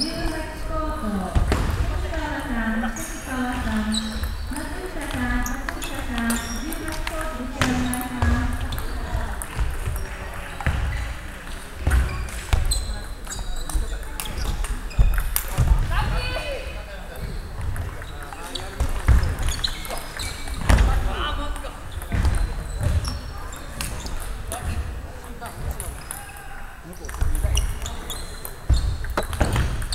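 A table tennis ball clicks back and forth between paddles and bounces on a table.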